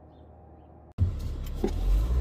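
A car engine hums as it drives along a road.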